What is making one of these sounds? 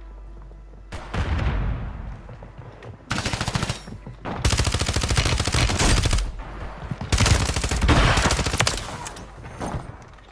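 Gunfire bursts loudly in a series of rapid shots.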